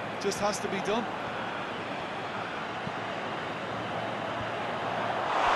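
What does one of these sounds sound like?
A stadium crowd roars steadily, swelling toward the end.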